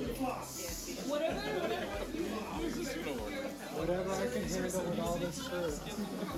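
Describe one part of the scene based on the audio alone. Several men and women chat nearby.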